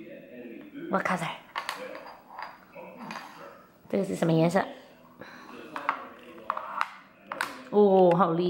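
Small plastic tiles click as they are pressed and moved.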